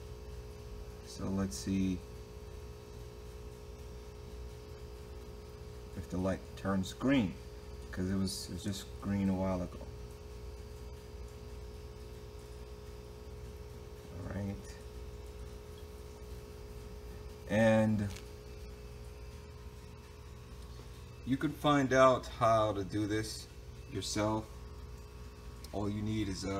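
A battery charger hums steadily.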